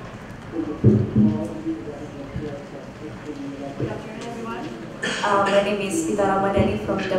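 A young woman speaks calmly into a microphone, heard through loudspeakers in a large room.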